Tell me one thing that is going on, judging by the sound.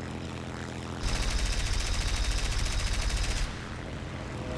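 Machine guns fire in a rapid burst.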